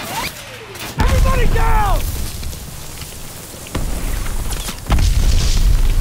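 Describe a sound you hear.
Heavy gunfire and explosions blast nearby.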